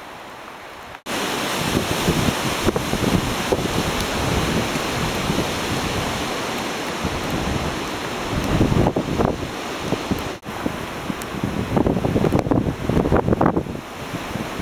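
Strong wind roars and gusts through trees outdoors.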